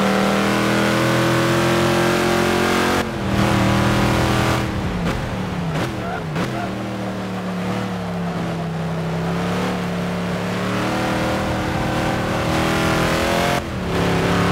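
A race car engine roars at high revs and shifts up through the gears.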